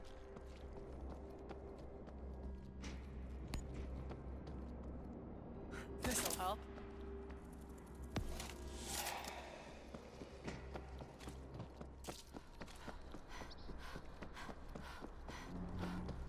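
Footsteps tread on a hard, gritty floor.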